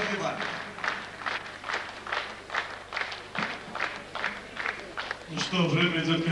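An audience claps in a steady rhythm.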